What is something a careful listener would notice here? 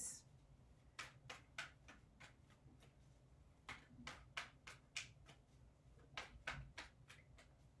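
Cards riffle and flick as they are shuffled.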